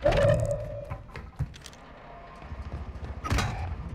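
A metal ladder clanks under climbing feet.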